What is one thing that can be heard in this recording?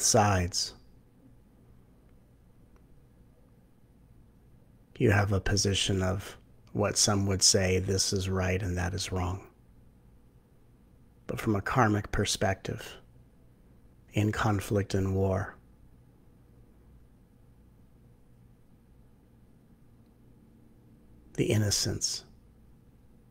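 A middle-aged man speaks calmly into a microphone, heard as if over an online call, in short bursts with pauses.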